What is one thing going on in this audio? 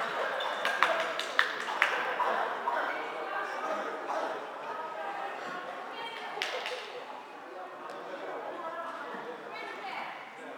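Young women call out to each other across an echoing hall.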